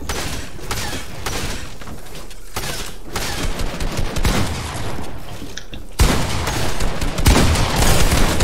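Keyboard keys clatter rapidly under typing fingers.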